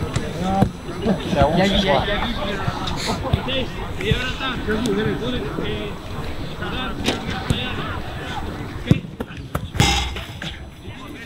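Men call and talk across an outdoor training pitch.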